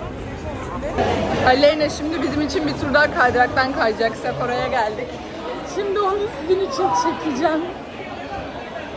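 A young woman talks with animation close to the microphone.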